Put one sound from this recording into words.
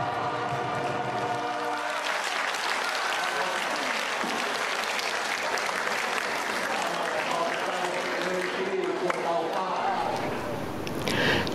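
A brass band plays.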